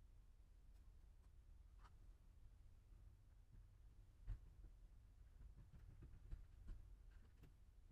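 Wind rumbles low and steady outdoors.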